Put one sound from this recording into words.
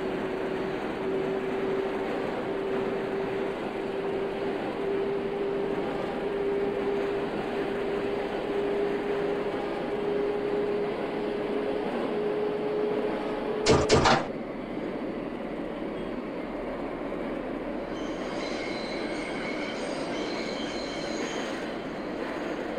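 A subway train rumbles steadily along the tracks through a tunnel.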